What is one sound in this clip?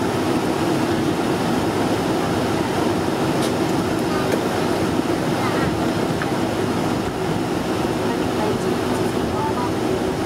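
Airliner wheels rumble along a runway.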